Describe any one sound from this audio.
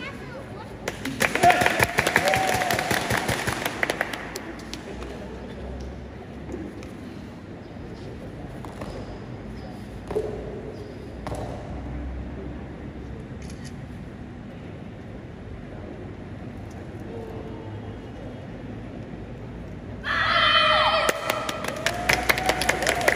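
Karate uniforms snap sharply with quick strikes.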